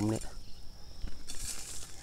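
A sickle rustles through dry cut weeds.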